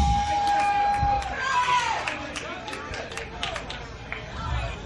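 A drummer taps the cymbals and drums on a stage.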